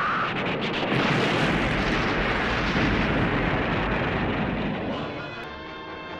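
A huge explosion booms and roars.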